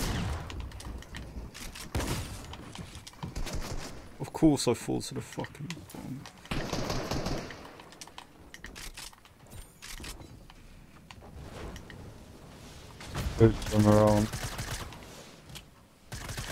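Game building pieces click and thud into place in quick bursts.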